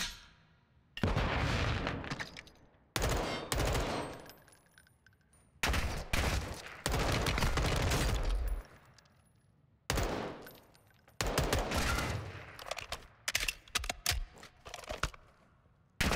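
Rapid gunfire bursts loudly with heavy booms.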